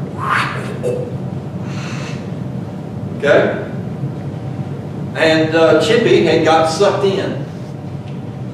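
A man speaks calmly into a microphone in an echoing hall, with pauses.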